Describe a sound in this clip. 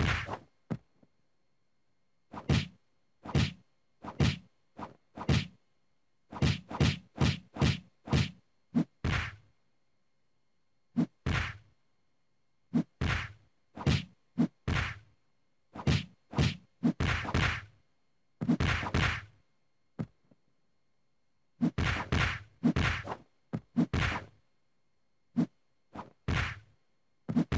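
Punches and kicks land with sharp, heavy thuds in quick bursts.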